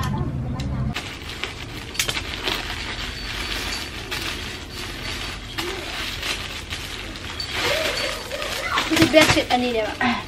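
Plastic packaging rustles and crinkles as it is torn open.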